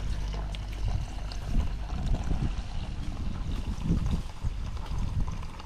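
Milk pours in a steady stream and splashes into a container.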